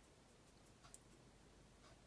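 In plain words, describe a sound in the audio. A paintbrush swirls through thick paint.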